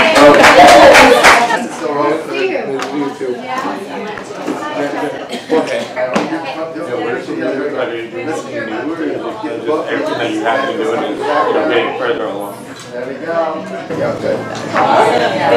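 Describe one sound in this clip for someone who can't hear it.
Several women and men chat nearby in a lively murmur.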